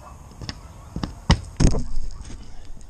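Hands knock and bump against a drone as it is picked up.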